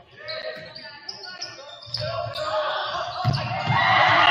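Young men shout to one another in a large echoing gym.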